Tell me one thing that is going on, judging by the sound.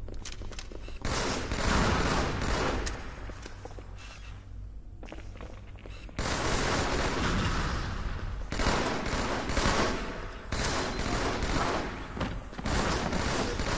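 Gunfire from a video game rattles in quick bursts.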